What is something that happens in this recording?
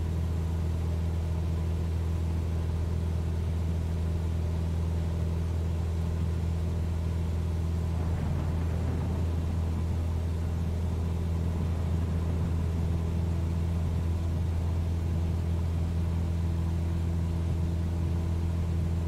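A small propeller plane's engine drones steadily.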